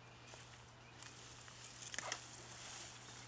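Leaves and soil rustle as plants are pulled up.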